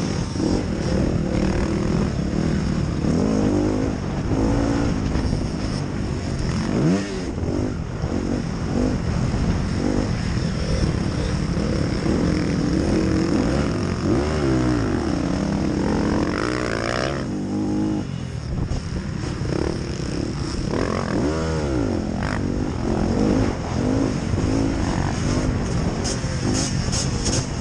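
Other motorbikes' engines whine nearby.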